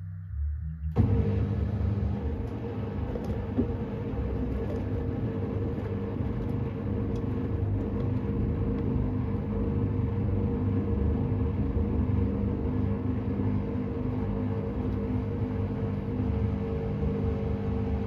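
Laundry sloshes and tumbles in water inside a washing machine.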